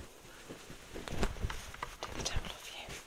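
Soft cloth rustles close to a microphone.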